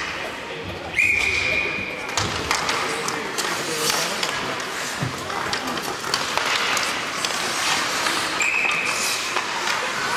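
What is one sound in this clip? A referee's whistle blows sharply in an echoing arena.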